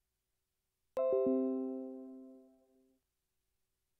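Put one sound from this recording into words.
A computer notification chime rings once and fades.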